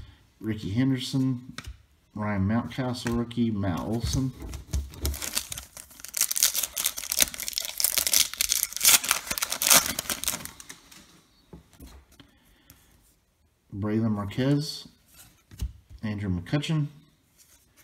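Trading cards shuffle and slide against each other.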